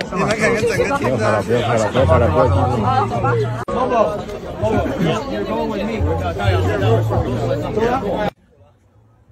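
A crowd of young people chatters and shouts loudly.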